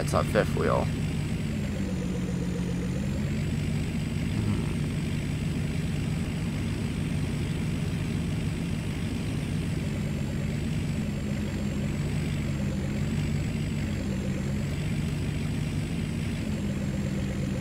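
A truck engine hums steadily as the truck cruises along a road.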